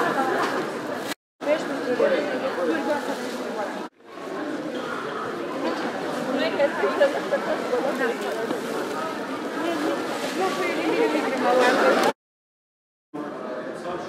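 A crowd of women and men chatter in a busy, echoing hall.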